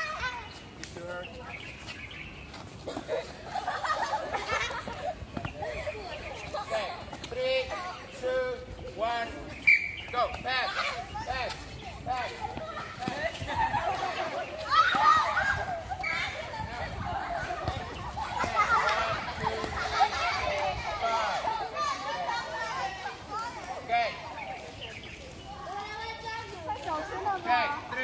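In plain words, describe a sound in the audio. Children shout and chatter outdoors.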